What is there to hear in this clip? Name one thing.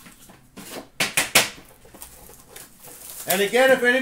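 A metal tin clatters as it is set down.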